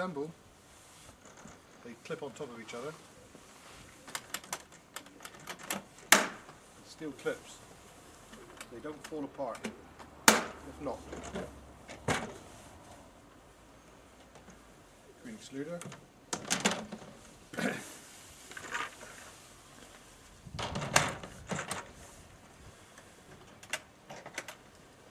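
Plastic hive boxes knock and clunk as they are handled.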